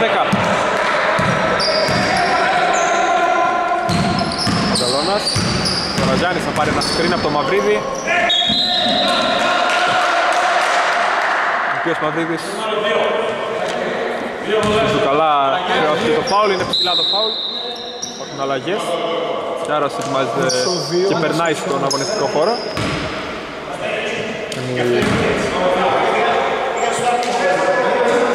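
Men shout and call out in a large echoing hall.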